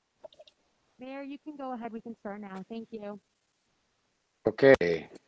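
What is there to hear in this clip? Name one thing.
An older man speaks calmly over an online call.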